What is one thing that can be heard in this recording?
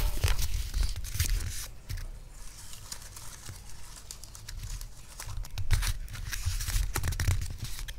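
Fingers rub and crinkle cardboard close by.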